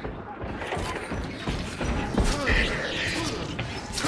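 A heavy blow strikes a body with a dull thud.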